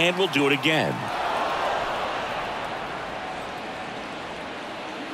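A crowd cheers loudly and then settles.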